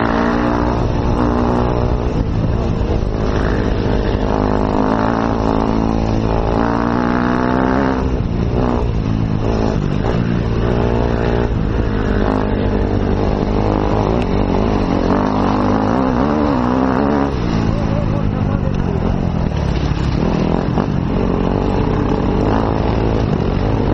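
A motorcycle engine revs up and down loudly close by.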